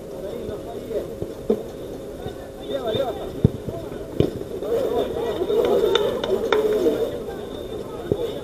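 Young men shout and call out to each other across an outdoor pitch.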